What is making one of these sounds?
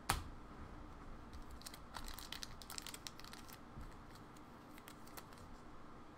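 Plastic card holders rustle and click as hands handle them.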